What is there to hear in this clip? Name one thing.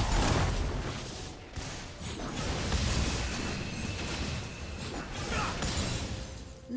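Video game spells burst and weapons clash in a fight.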